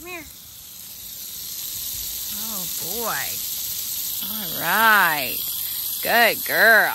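Water hisses as it sprays from a hose.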